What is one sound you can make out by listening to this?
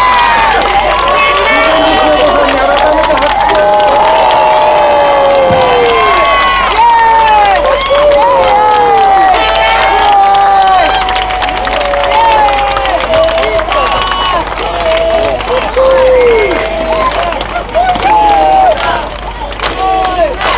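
A crowd sings together loudly nearby.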